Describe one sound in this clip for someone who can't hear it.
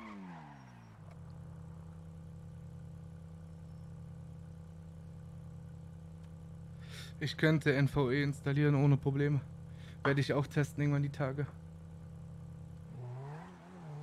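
A sports car engine idles steadily.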